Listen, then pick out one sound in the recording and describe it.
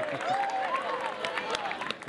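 A small crowd claps its hands.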